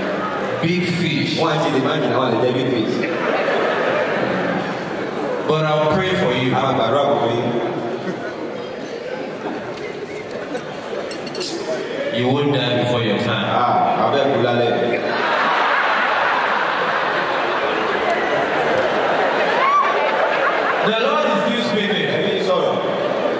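A crowd cheers and murmurs.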